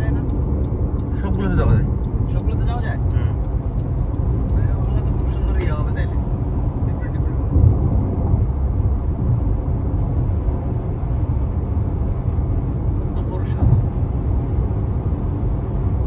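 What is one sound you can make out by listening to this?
Road noise rumbles steadily from inside a moving car on a highway.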